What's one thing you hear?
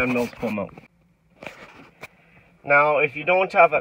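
A button on a car stereo clicks.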